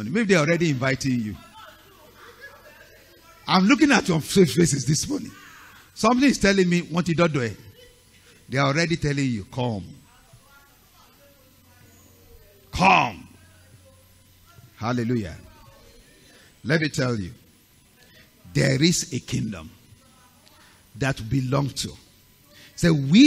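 A man preaches with animation through a headset microphone, in bursts with pauses.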